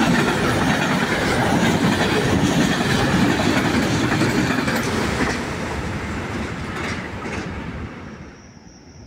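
A freight train rushes past close by with a loud rumble and rattle, then fades away.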